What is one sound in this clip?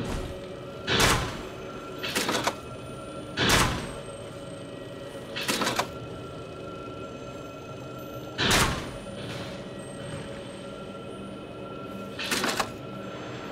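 A crossbow fires bolts with sharp snaps.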